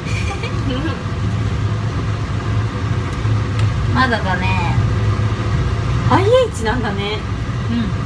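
Another young woman talks close to a phone microphone.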